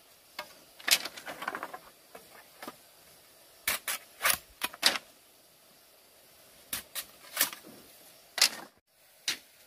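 Bamboo strips clatter and knock together as they are handled.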